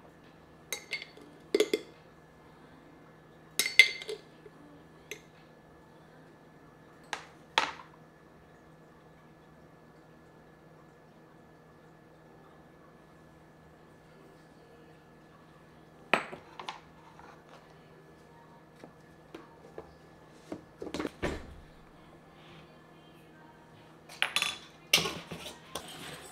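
A spoon taps and clinks against a glass bowl.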